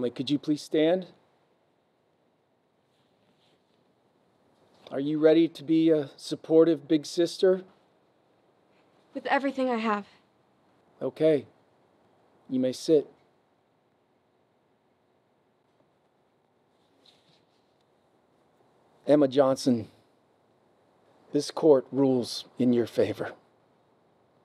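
A middle-aged man speaks calmly and clearly, close by, with pauses.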